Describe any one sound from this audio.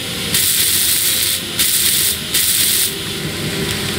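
A welding torch hisses and crackles in short bursts.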